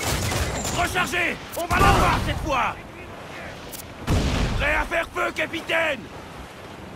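Cannons fire with loud booms.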